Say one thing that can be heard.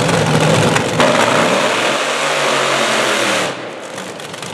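A dragster engine revs sharply up and down.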